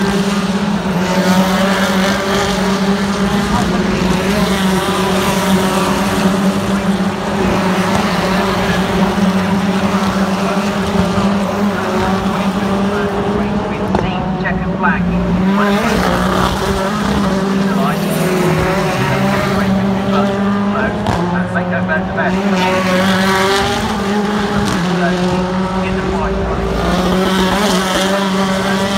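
Racing car engines roar loudly as cars speed past, revving up and down through the gears.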